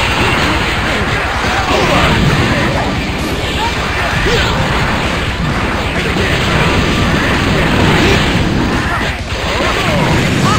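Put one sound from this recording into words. An energy blast whooshes and explodes.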